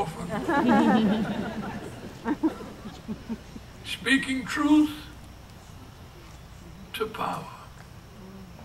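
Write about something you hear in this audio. An elderly man speaks slowly and forcefully into a microphone outdoors.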